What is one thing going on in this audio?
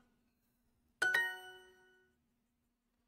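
A short bright chime rings once and fades.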